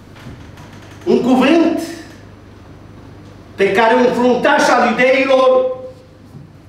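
A middle-aged man speaks with animation in a room with some echo, heard through a microphone.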